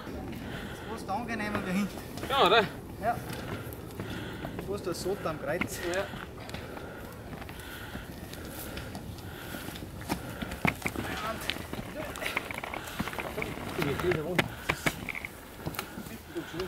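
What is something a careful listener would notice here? Several men talk and call out to each other outdoors.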